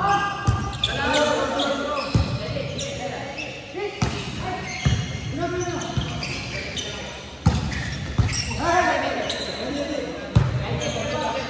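A volleyball is struck by hands in a large echoing hall.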